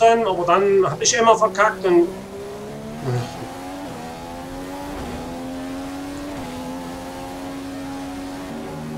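A racing car engine whines loudly, rising in pitch and dropping with each gear change.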